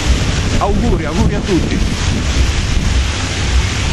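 A man speaks close by, outdoors.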